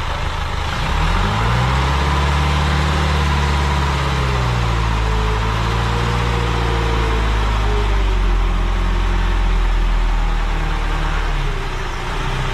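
A truck engine revs loudly as a hydraulic dump bed lifts, then drops back to idle.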